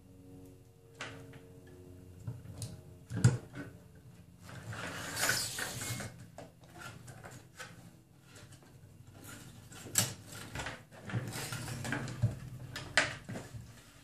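Small plastic parts click and snap into place.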